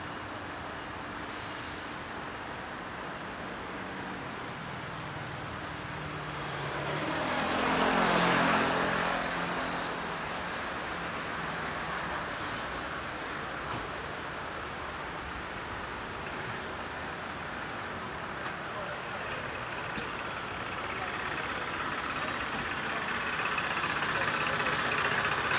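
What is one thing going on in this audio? Traffic hums along a nearby street.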